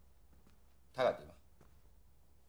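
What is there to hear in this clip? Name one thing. A middle-aged man asks a short question calmly.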